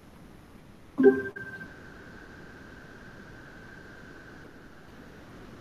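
A short electronic chime rings out once and fades.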